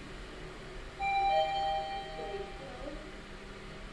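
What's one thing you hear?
An elevator chime rings out in a few clear tones.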